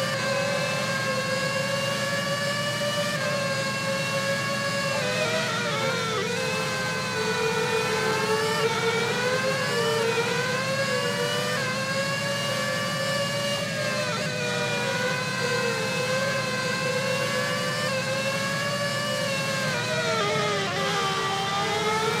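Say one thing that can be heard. A racing car engine whines loudly, its pitch rising and dropping with gear shifts and braking.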